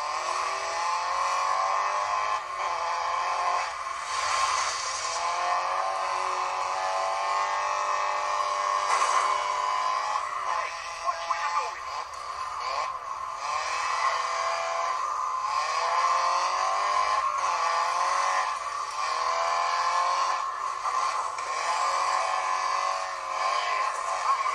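A rally car engine revs high and shifts gears, rising and dropping in pitch.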